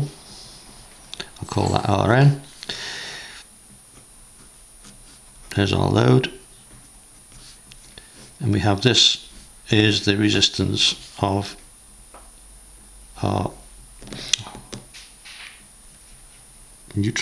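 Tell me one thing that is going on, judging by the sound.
A felt-tip pen squeaks and scratches across paper.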